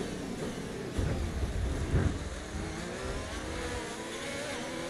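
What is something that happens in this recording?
Other racing cars roar past close by.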